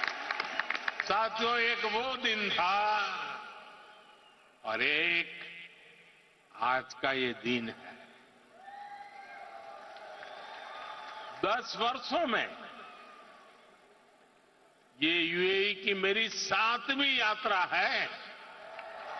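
An elderly man speaks with emphasis through a microphone in a large echoing hall.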